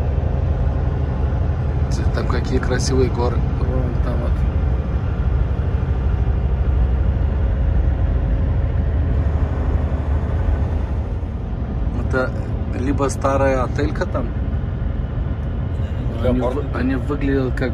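A large vehicle's engine rumbles steadily as it drives along a road.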